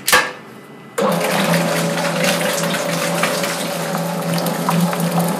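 An electric dough mixer starts up and hums steadily as it churns.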